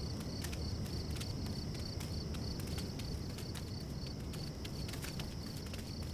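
Footsteps run across stone paving.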